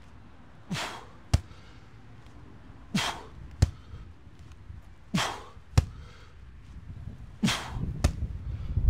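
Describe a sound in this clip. A man grunts sharply with each heavy lift.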